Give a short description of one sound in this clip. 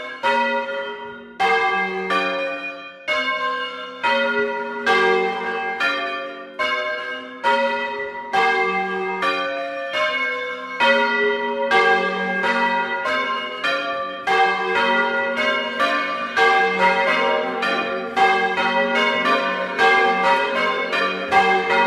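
Four large bronze church bells swing full circle and ring in a pealing sequence.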